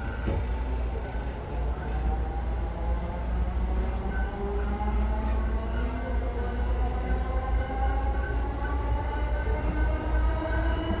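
A train's electric motor whines, rising in pitch as the train speeds up.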